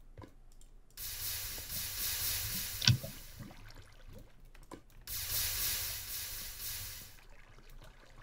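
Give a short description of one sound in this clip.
Water pours out and splashes.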